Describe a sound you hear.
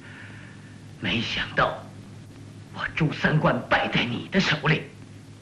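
A young man speaks tensely.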